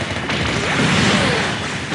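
A laser beam fires with a sweeping hum.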